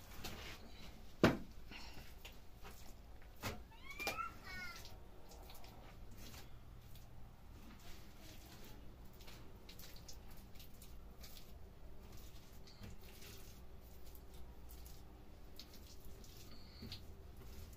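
A man slaps wet plaster onto a ceiling by hand with soft wet smacks.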